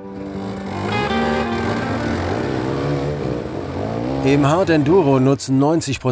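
A dirt bike engine revs hard, rising and falling in bursts as it climbs.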